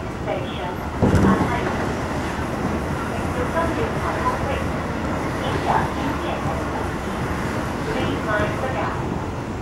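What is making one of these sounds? Another train rushes past close by with a sudden whoosh.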